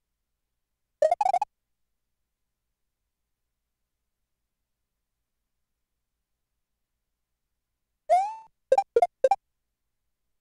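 A video game plays short, bright chirping jump and stomp sound effects.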